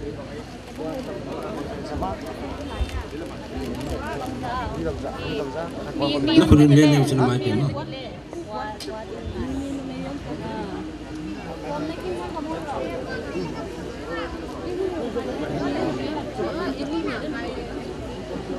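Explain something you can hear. A man speaks into a microphone over loudspeakers, echoing outdoors.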